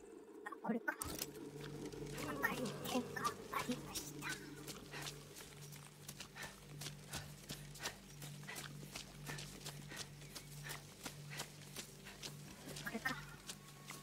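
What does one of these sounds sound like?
Footsteps crunch quickly along a gravel path.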